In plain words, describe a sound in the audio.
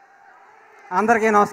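A man speaks into a microphone through loudspeakers.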